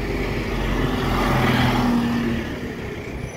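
A train rumbles loudly while moving.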